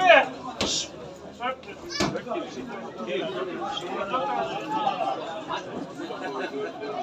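Young men shout to each other from a distance across an open outdoor pitch.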